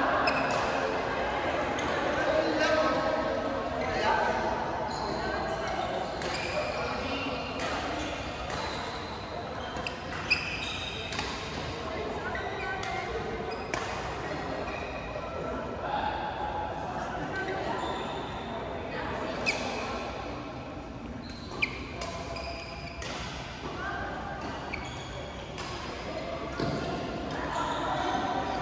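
Many players call out and chatter, echoing in a large hall.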